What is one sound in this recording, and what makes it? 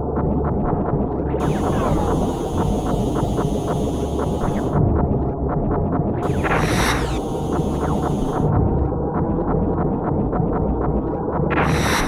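Rapid laser shots fire in quick bursts.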